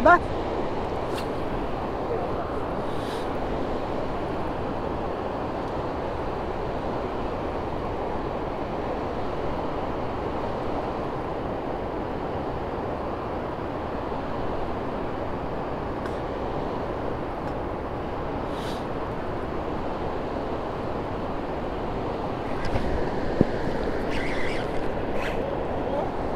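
Water laps and splashes against a small boat close by.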